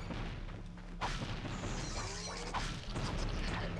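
Short bright chimes ring out as items are collected.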